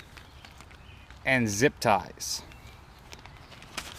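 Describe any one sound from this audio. A plastic bag crinkles in a hand.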